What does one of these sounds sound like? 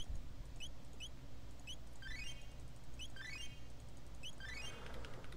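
Short electronic blips sound as a game menu cursor moves.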